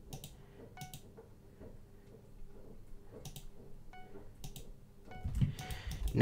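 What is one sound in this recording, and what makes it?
Soft game clicks tick now and then.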